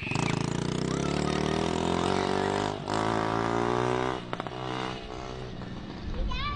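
A small motorbike engine revs loudly and whines as it rides off.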